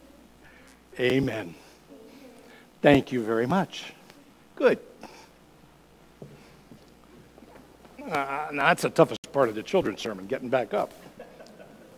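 An elderly man speaks warmly through a microphone in a large echoing hall.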